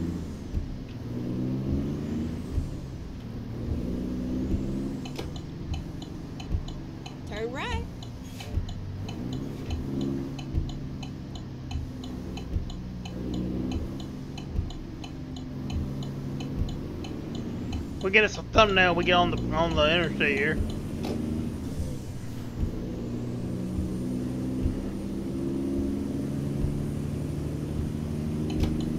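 A truck engine hums and drones steadily.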